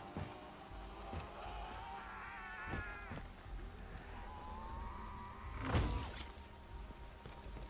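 A monster lets out a low, wavering growl.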